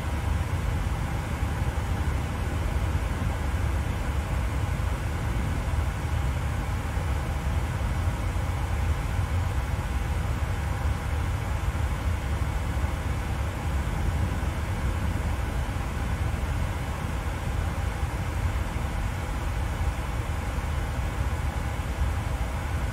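An airliner's engines drone steadily with a low rumble.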